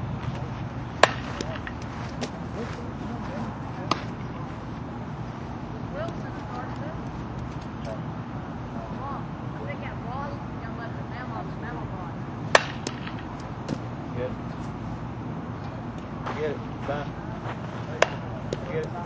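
A ball smacks into a leather glove with sharp pops.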